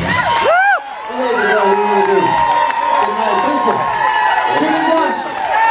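An audience cheers and whistles loudly.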